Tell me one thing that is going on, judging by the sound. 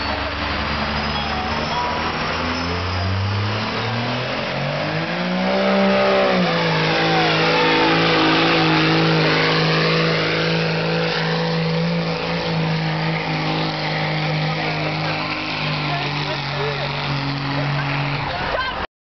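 A diesel truck engine roars loudly, revving up and holding a strained, steady drone.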